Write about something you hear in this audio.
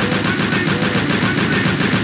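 A chaingun fires rapid shots.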